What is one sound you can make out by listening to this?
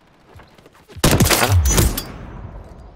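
A rifle fires a single loud, booming shot.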